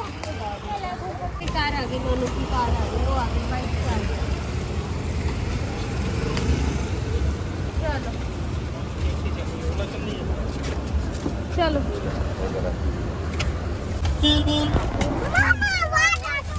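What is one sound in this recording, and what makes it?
Traffic rumbles low on a nearby street.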